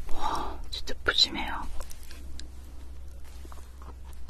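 Bread crackles and rustles in a young woman's hands.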